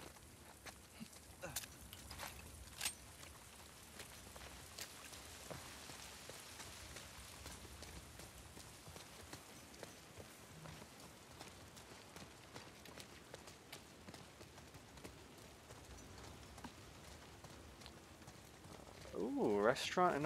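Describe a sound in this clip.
Footsteps crunch over wet ground.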